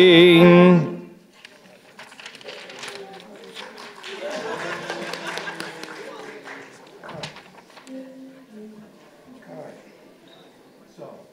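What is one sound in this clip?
An audience murmurs and shuffles in a large room.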